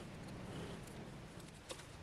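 A file rasps against the edge of a wooden strip.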